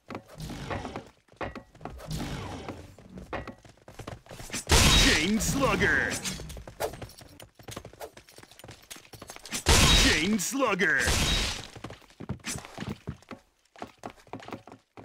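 A knife slashes through the air with sharp swishes.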